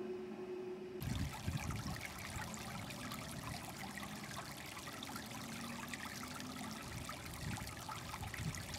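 Water trickles gently between rocks.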